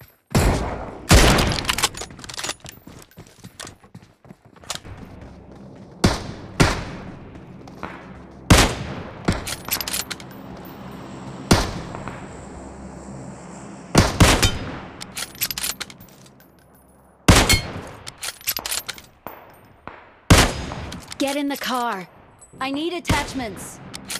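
Loud rifle shots crack out, one at a time, each with a ringing echo.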